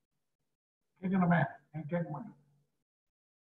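An older man speaks through an online call.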